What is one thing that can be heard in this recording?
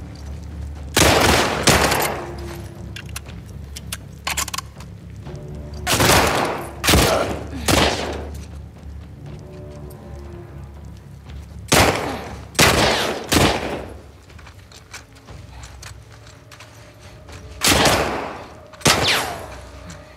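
Gunshots ring out loudly, echoing in a large room.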